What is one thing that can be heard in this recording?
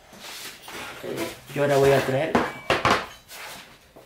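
A metal block clatters down onto a hard surface.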